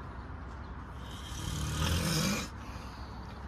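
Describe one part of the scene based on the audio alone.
A man snores loudly in his sleep.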